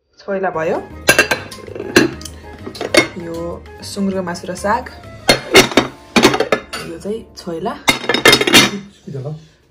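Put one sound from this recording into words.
Glass lids clink against glass dishes.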